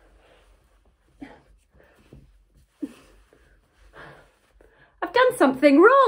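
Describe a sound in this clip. Fabric rustles as a sweatshirt is pulled over a head.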